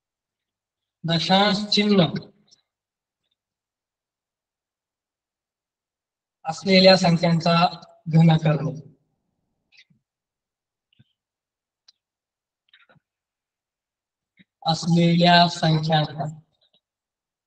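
A man speaks calmly and clearly in short phrases, close by.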